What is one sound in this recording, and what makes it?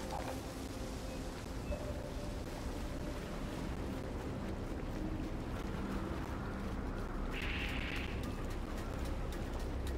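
Water splashes and sloshes around legs wading through the shallows.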